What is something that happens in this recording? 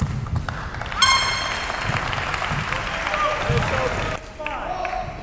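Spectators cheer and applaud in a large echoing hall.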